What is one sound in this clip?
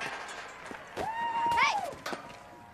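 A young woman shouts with excitement.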